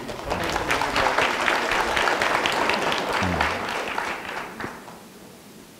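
An audience applauds in a large room, then the clapping dies away.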